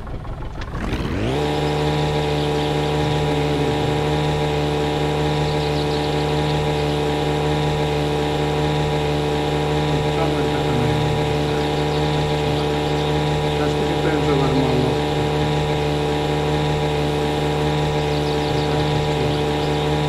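An outboard motor starts up and drones steadily.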